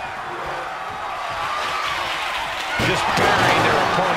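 A metal trash can clatters onto a wrestling mat.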